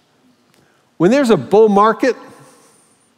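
A man speaks loudly and with animation through a microphone in a large echoing hall.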